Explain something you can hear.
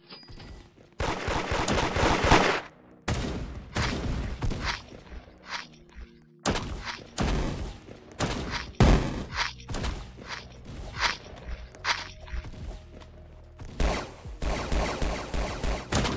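Guns fire in loud, rapid bursts.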